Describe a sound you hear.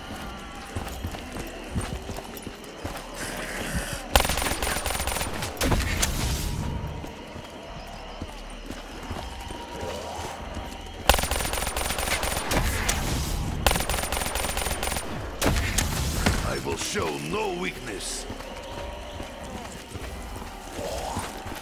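Monsters growl and snarl.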